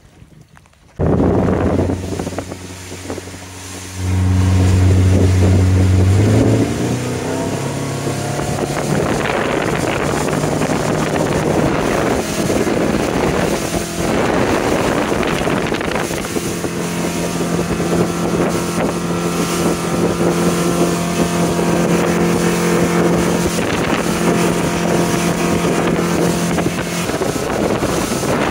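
A boat's outboard engine hums and roars as it speeds up.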